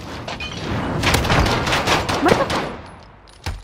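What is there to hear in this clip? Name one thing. A pistol fires several sharp shots in quick succession.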